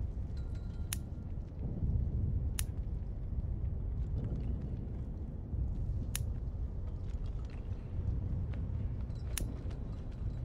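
Short, sharp clicks sound as menu pages turn.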